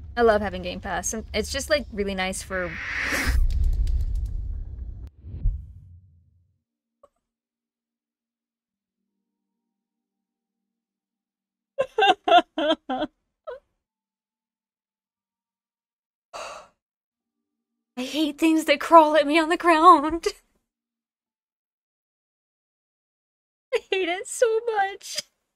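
A young woman talks and screams with animation close to a microphone.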